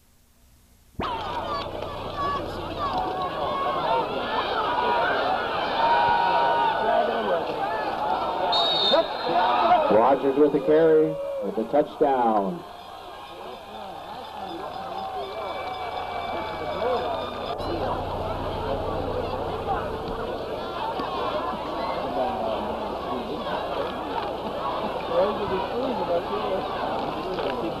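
A crowd cheers and chatters loudly outdoors.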